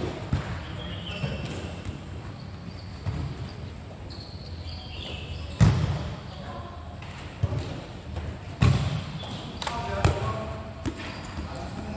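A ball thuds as players kick it, echoing under a large roof.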